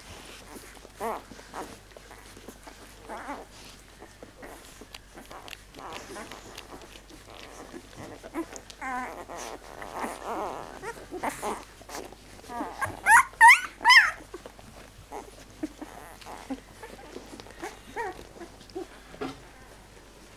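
Newborn puppies squeak and whimper close by.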